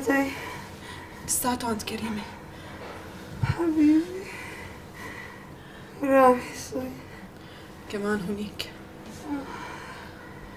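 A young woman speaks softly and tenderly, close by.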